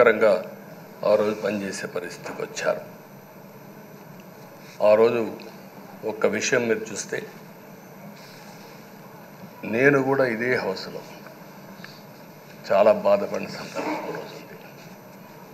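An older man speaks slowly and deliberately through a microphone, with long pauses.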